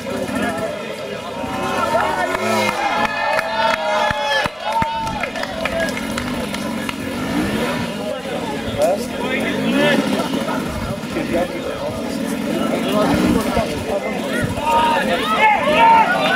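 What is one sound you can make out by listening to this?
A crowd of men and women shout and cheer outdoors.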